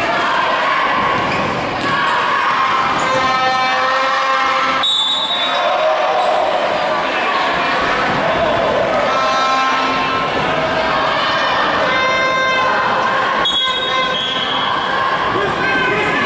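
A crowd of spectators murmurs and calls out in an echoing gym.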